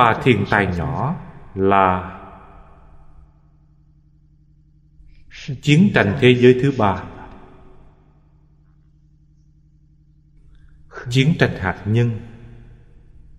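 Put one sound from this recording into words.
An elderly man speaks calmly and slowly into a close microphone, with pauses between phrases.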